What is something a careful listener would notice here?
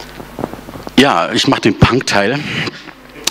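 A man speaks loudly into a microphone in a large room.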